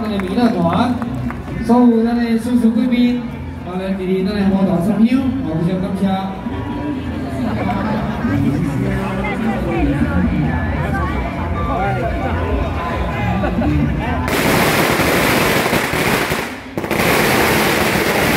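A large crowd of men and women talk and call out loudly nearby.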